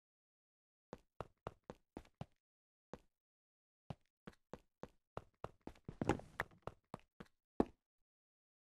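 Footsteps tap on stone in a video game.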